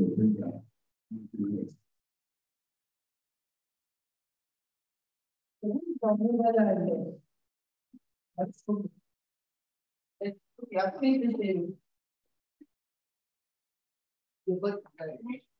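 A man speaks into a microphone in short bursts with pauses, heard through an online call.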